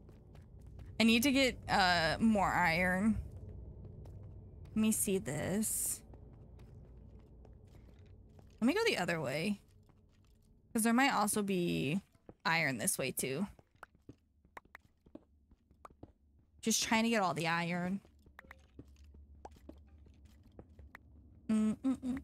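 A young woman talks animatedly into a close microphone, in short bursts.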